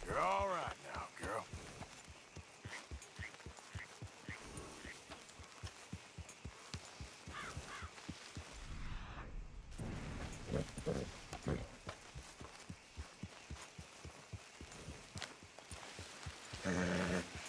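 A horse's hooves thud steadily on soft forest ground.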